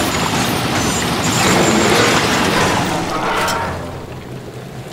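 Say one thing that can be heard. A weapon fires with a loud hissing spray.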